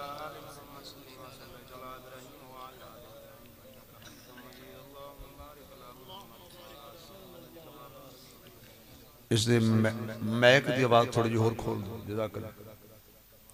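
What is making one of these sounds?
A man chants in a melodic voice into a microphone, heard through loudspeakers.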